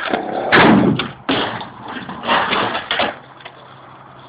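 A skateboard grinds along a metal rail.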